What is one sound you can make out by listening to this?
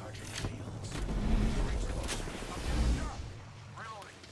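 A deep rumbling blast booms and fades.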